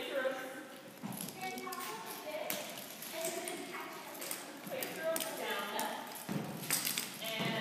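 Young women talk and call out in a large echoing hall.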